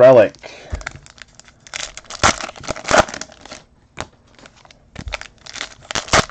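Hands rustle and crinkle a plastic-wrapped pack of cards.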